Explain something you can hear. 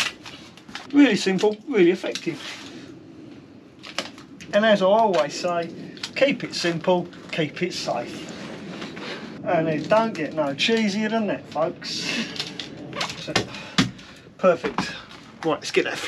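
An older man talks calmly close by.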